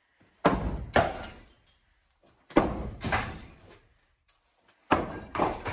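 Rubble clatters down onto the floor.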